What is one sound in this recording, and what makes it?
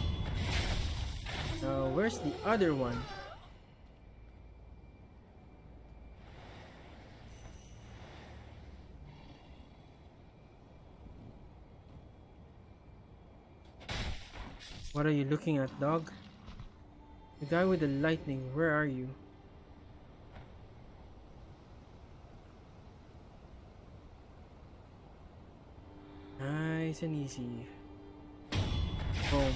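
Swords clash with sharp metallic strikes.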